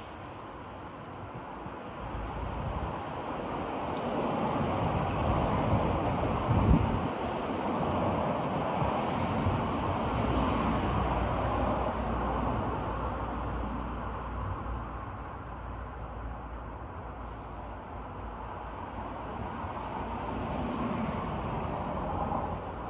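Wind rustles through the leaves of tall trees outdoors, rising and falling in gusts.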